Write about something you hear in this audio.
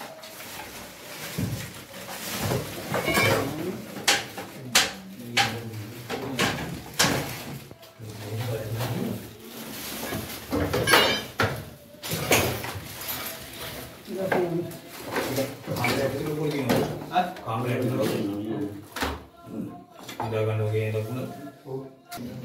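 Men talk nearby in agitated voices.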